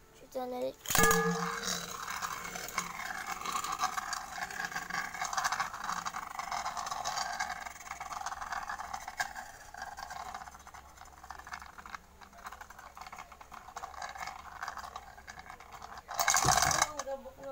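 A spinning top whirs and rattles against a hard surface.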